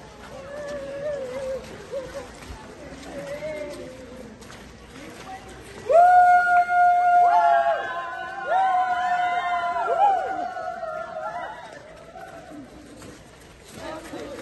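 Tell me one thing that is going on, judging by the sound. A crowd of dancers shuffle and step in time on cobblestones outdoors.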